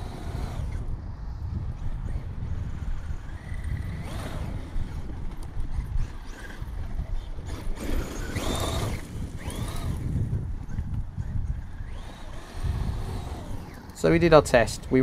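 A small electric remote-control car whines as it speeds and skids over loose dirt.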